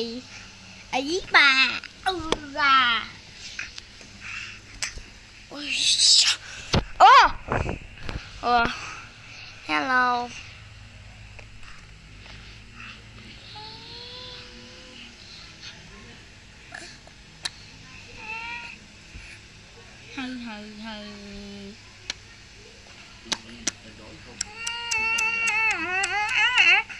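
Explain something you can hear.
A baby coos and babbles close by.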